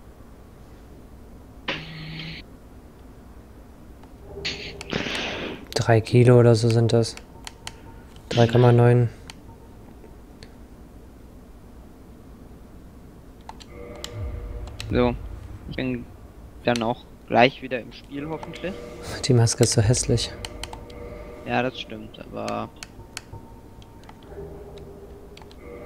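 Soft menu clicks sound as a selection changes.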